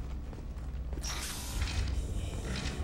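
A heavy sliding door whooshes open.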